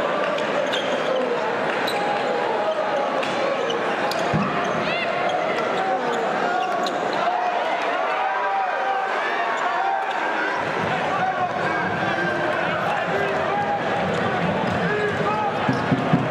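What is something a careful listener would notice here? A large crowd cheers and chants loudly in a big echoing arena.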